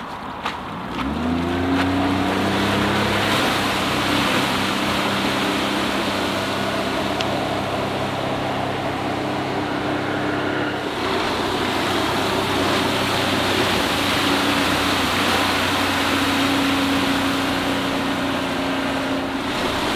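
A four-stroke outboard motor drives a boat at speed.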